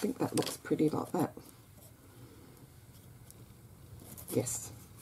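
Paper rustles softly as a hand presses it down.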